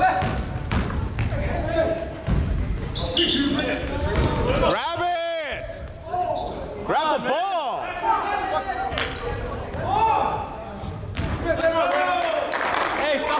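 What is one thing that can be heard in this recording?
Men shout to each other during the game.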